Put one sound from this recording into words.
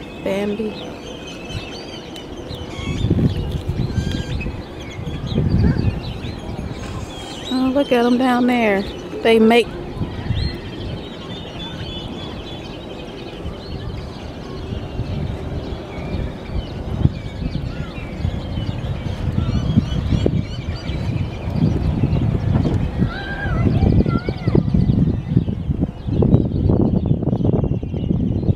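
Wind blows in strong gusts outdoors.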